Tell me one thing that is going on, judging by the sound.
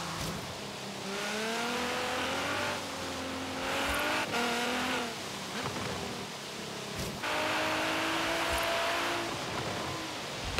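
A sports car engine revs high and shifts gears.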